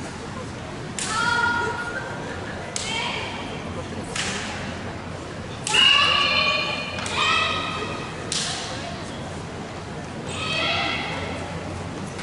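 Young women let out sharp, high shouts in a large echoing hall.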